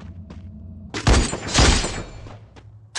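Gunshots crack loudly a few times.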